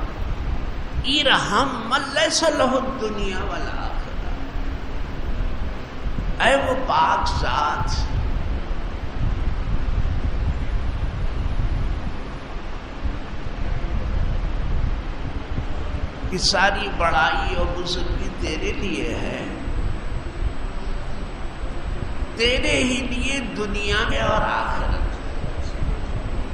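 An elderly man speaks calmly through a microphone, with pauses between phrases.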